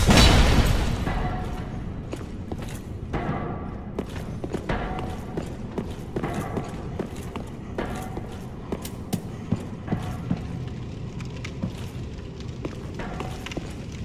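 Armored footsteps clank on stone as a knight walks.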